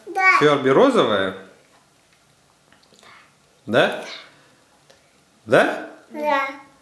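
A young child speaks in a high, playful voice close by.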